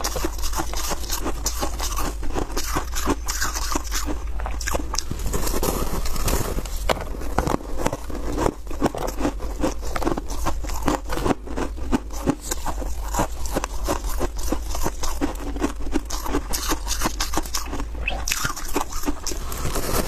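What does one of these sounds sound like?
Crushed ice crunches loudly and crisply as a young woman bites and chews it close by.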